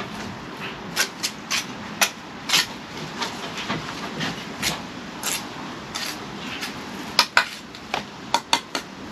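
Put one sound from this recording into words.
A steel trowel scrapes and taps mortar on brickwork.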